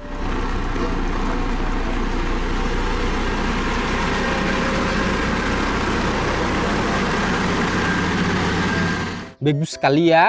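A road roller's diesel engine rumbles steadily up close.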